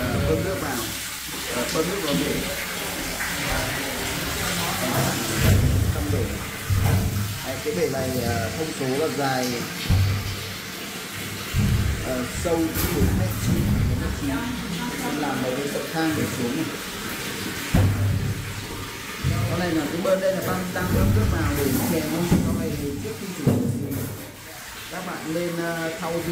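Water gushes from a hose and splashes onto a metal floor.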